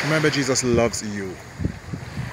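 A man speaks briefly close to the microphone.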